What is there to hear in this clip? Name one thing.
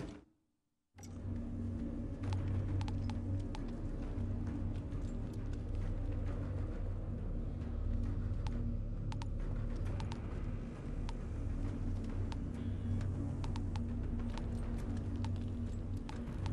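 Menu clicks tick sharply now and then.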